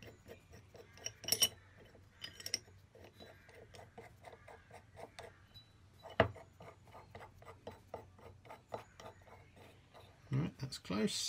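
A small metal screw clicks in quick, even ticks as it is turned.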